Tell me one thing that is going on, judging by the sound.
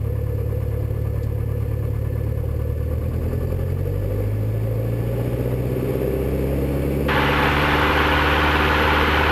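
Wheels rumble along a runway as the plane speeds up.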